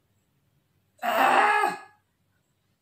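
A young woman gasps in surprise close to a microphone.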